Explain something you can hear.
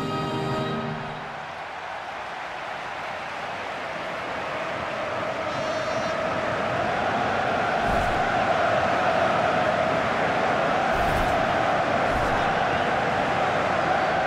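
A large crowd roars steadily in a stadium, growing louder.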